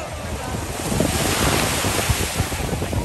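A person splashes into the water.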